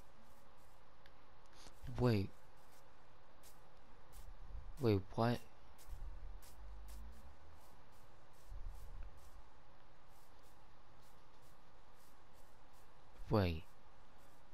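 Footsteps patter steadily on grass.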